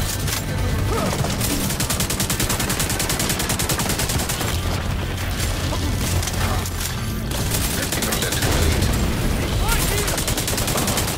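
Rapid gunfire rattles in fast bursts.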